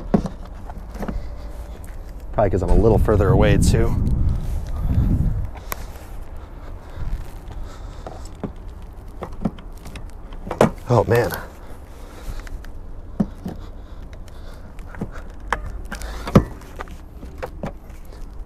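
A charging plug clicks into a car's port.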